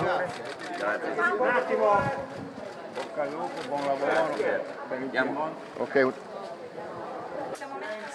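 A middle-aged man speaks warmly up close.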